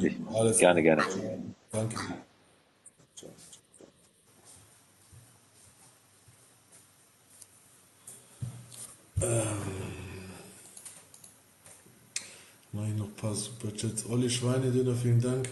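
A man speaks calmly and close up into a phone microphone, with long pauses.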